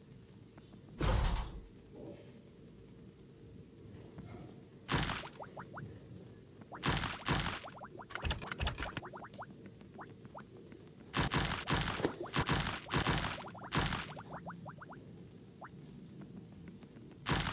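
Game blocks break with sharp crunching bursts.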